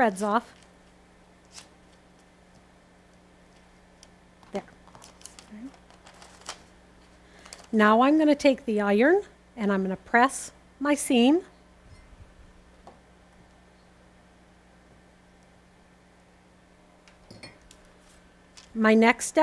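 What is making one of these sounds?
A woman talks calmly and close up, through a microphone.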